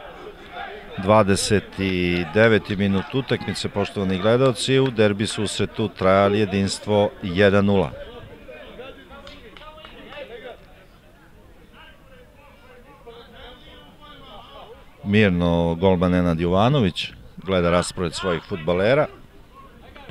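A crowd of spectators chants and shouts outdoors.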